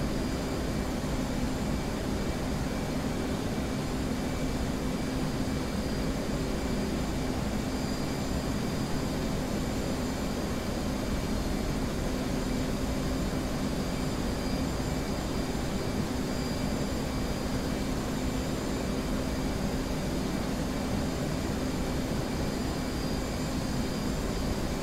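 A jet engine drones steadily from inside a cockpit.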